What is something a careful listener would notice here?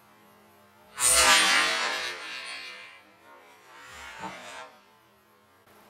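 Paper flaps and whooshes through the air.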